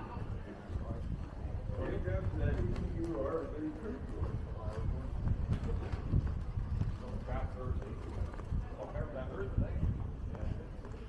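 A young man and a young woman talk quietly as they walk ahead.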